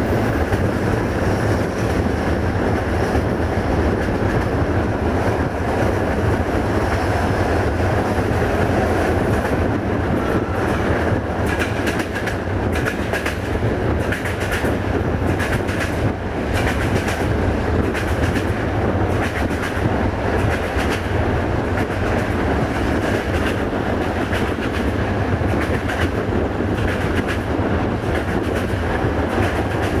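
Wind rushes past an open train window.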